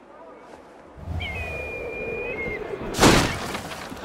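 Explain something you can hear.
Air rushes loudly past during a long fall.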